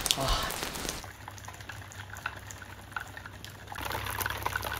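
Water drips and trickles from a roof edge.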